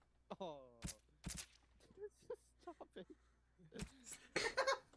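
Wet splats and thuds sound from a video game.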